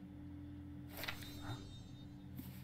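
Paper rustles as an old book is handled.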